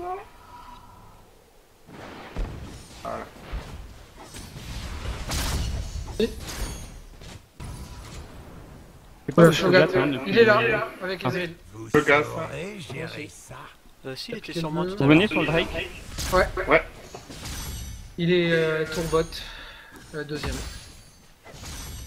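Magic spells crackle and burst during a fight.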